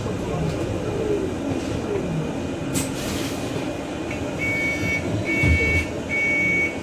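A bus engine rumbles steadily underneath.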